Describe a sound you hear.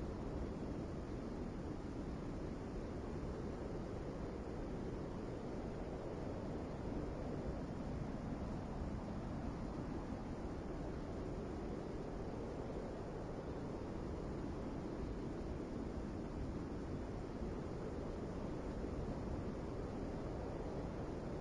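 A large ship's engine rumbles low and steadily.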